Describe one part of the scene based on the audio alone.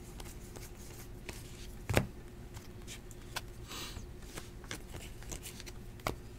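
Trading cards slide and tick against each other as they are shuffled by hand.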